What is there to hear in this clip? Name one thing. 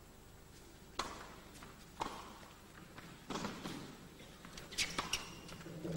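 A tennis ball is struck back and forth with sharp pops of the racket.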